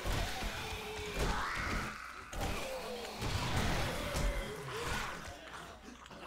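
Fists thump against flesh in heavy punches.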